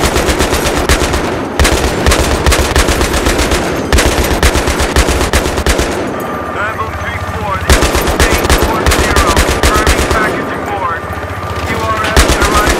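A heavy machine gun fires in rapid bursts close by.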